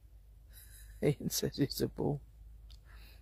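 A person speaks quietly and close by in a low voice.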